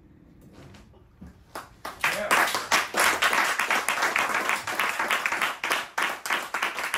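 A double bass is plucked in a walking line.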